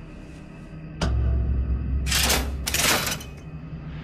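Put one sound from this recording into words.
A metal lever is pulled with a heavy clank.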